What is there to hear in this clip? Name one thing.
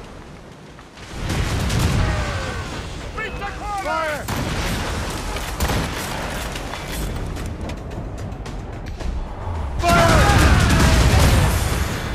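Cannons fire in heavy booming blasts.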